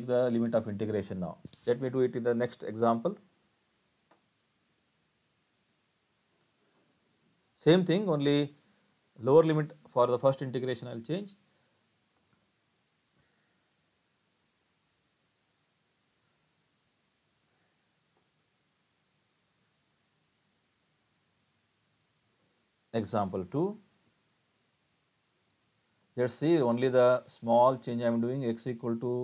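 An elderly man speaks calmly through a computer microphone, pausing between phrases.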